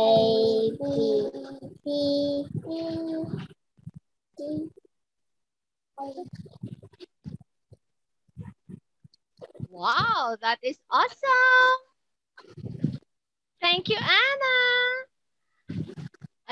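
A young girl speaks over an online call.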